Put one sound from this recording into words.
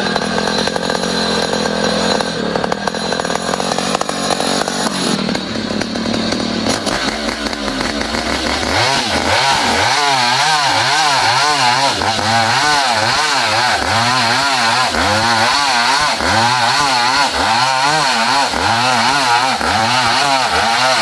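A chainsaw engine roars loudly while cutting through wood.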